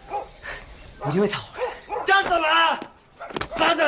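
Another young man yells a taunt loudly.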